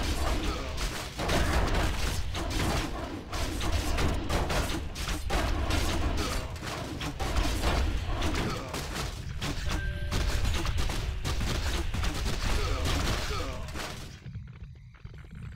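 Weapons clash and clang in a fast, noisy battle.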